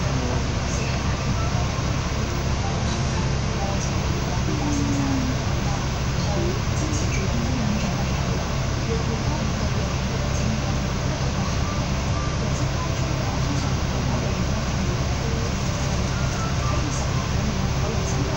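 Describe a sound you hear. A bus engine rumbles steadily.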